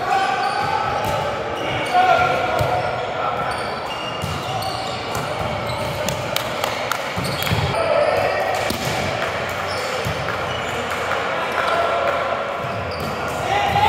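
Men call out to one another in a large echoing hall.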